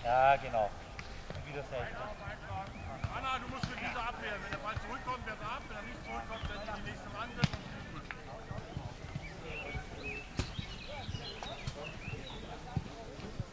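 Young men shout and call out to each other across an open field outdoors.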